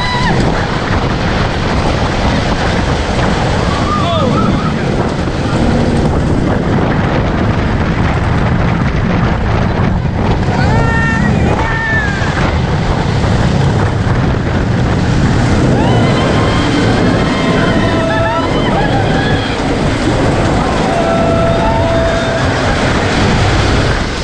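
Wind rushes loudly past a roller coaster ride.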